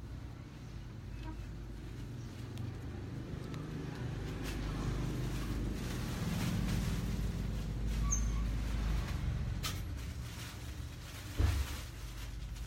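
Fabric rustles as hands handle a skirt.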